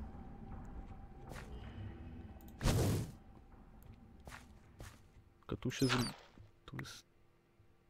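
Footsteps crunch on gravel and stone as a game character walks through a tunnel.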